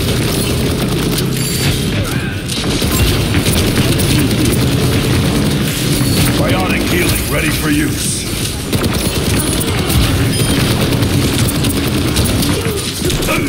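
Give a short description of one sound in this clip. A rifle fires rapid bursts of energy shots.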